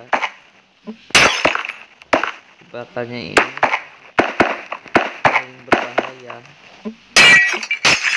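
Game blocks break with short, crunching taps, one after another.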